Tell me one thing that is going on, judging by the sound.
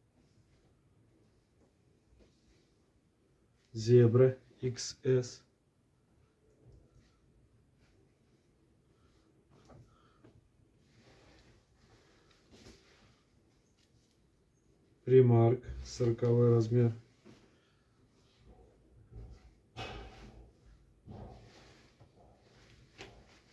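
Fabric rustles and swishes as clothes are laid down and smoothed flat.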